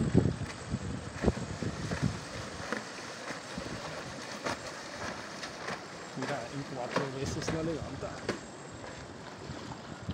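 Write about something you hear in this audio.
Water splashes around a paddle board gliding across the sea.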